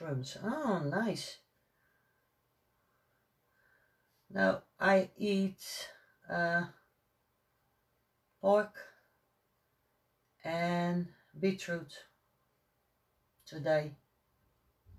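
A woman speaks calmly close by, in short phrases.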